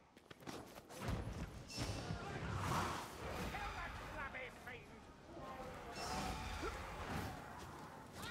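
Flames burst and roar.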